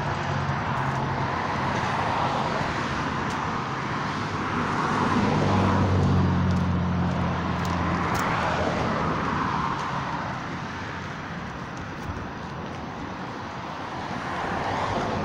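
Wind buffets outdoors throughout.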